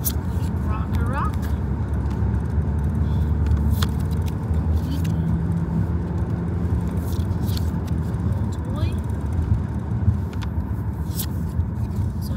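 Trading cards flick and rustle between fingers.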